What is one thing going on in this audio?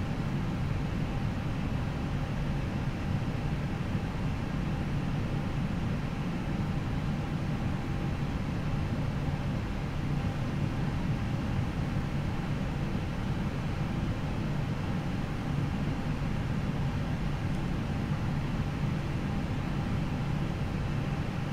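A jet engine hums steadily as an airliner taxis.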